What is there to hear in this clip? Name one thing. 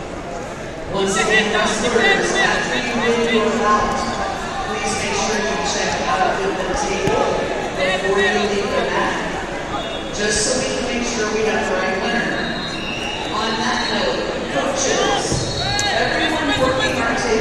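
Spectators call out and cheer loudly.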